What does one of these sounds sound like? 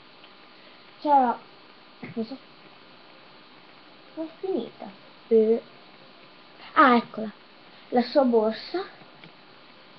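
A young girl talks with animation close to the microphone, in short bursts.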